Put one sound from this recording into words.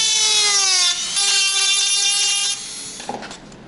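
A small electric motor whines, dropping in pitch and then holding steady before stopping.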